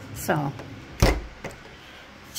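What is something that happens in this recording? A freezer door thumps shut.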